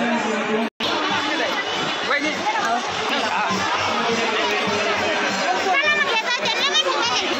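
A large outdoor crowd murmurs and chatters.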